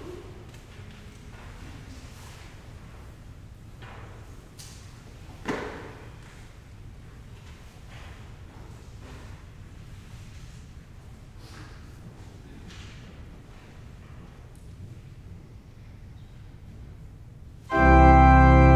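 A woman reads aloud softly in a large echoing hall.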